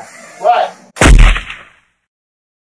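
A gun fires once.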